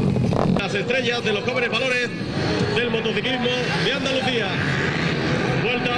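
Motorcycle engines rev and roar loudly.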